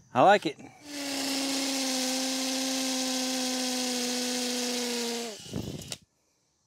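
A cordless drill whirs steadily as it drives a screw, then stops.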